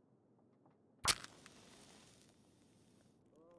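A match strikes and flares up.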